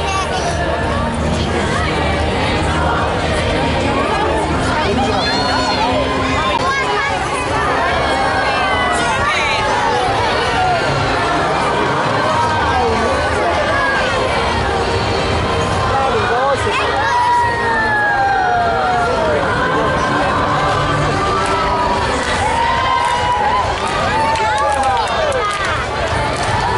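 Parade music with a steady beat plays loudly through loudspeakers.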